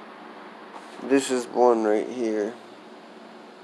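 A young man speaks briefly, close to a phone's microphone.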